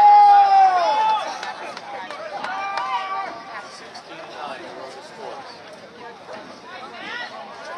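A football thuds off a boot.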